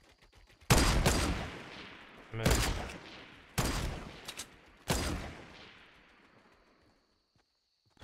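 Loud rifle shots crack and echo into the distance.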